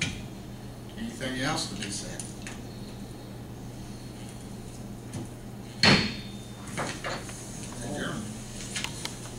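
A man speaks calmly through a microphone in a room with slight echo.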